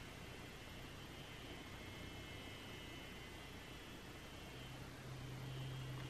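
A device hums softly against skin.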